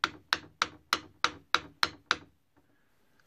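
A metal part clicks sharply in a quick, even rhythm.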